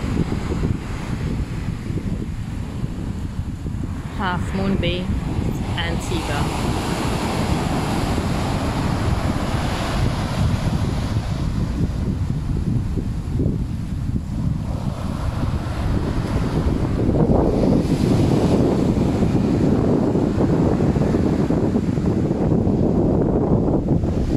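Waves wash and break on a sandy shore.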